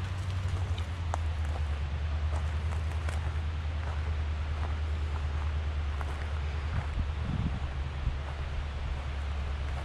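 Footsteps crunch on dry twigs and needles.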